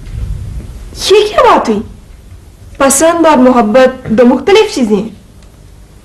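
A woman speaks earnestly, close to a microphone.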